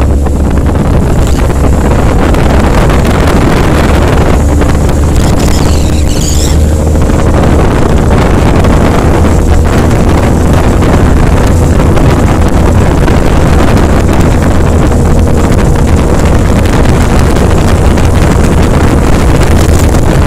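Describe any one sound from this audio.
A motorcycle engine hums steadily nearby.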